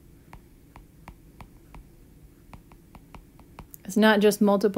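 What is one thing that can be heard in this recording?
A stylus taps lightly on a glass tablet.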